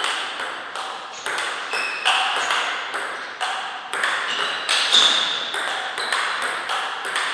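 A ping pong ball clicks back and forth across a table in a quick rally.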